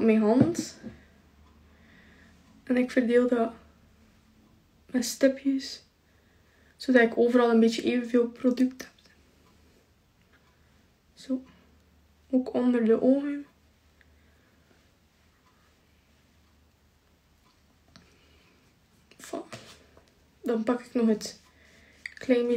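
A young woman talks calmly and close by, in short bursts with pauses.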